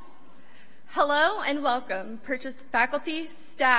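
A young woman speaks with animation through a microphone and loudspeakers in a large hall.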